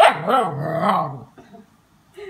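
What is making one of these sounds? A puppy howls up close.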